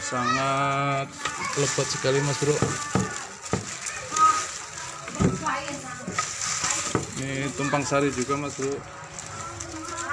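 Dry leaves and stalks rustle as a hand pushes through them.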